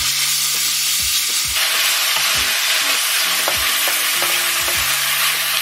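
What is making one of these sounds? A wooden spatula scrapes against a metal pan.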